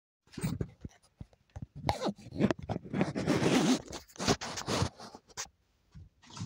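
A phone is handled close up, rubbing and knocking.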